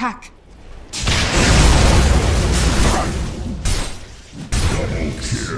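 Magic blasts burst and crackle during a fight.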